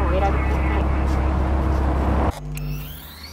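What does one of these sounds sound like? A car engine roars loudly as the car drives.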